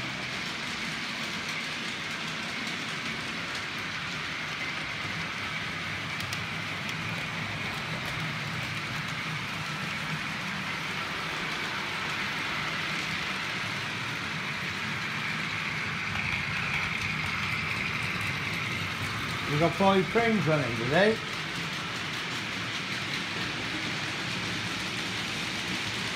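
Small model trains whir and clatter steadily along the tracks.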